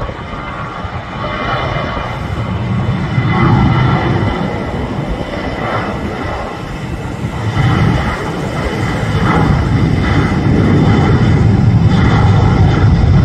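A jet airliner's engines roar as it speeds down a runway and lifts off, growing louder.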